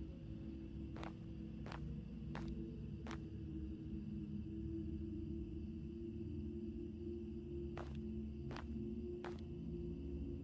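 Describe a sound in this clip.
Footsteps tread slowly on stone paving.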